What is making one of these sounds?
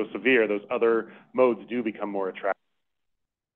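A man speaks at a podium into a microphone, heard through an online call.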